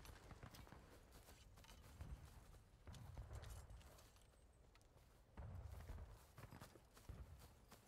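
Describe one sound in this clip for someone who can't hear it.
Footsteps rustle through dry undergrowth.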